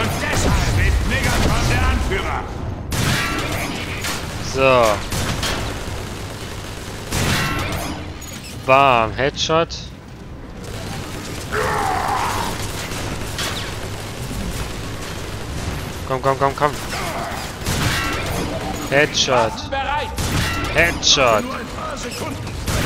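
Robots fire energy weapons with rapid zapping shots.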